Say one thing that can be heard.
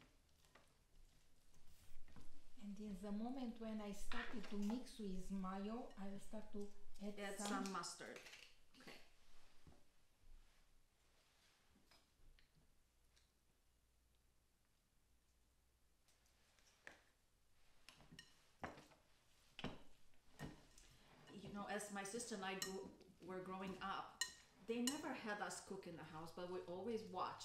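Food is tossed and squeezed in a bowl.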